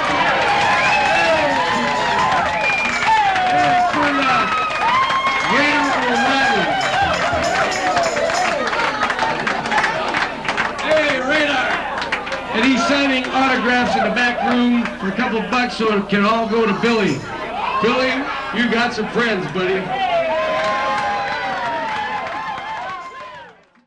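A crowd chatters in a busy room.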